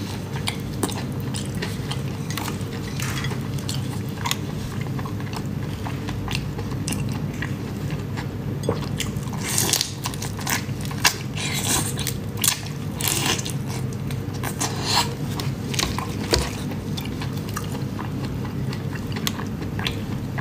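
Prawn shells crackle as hands peel them.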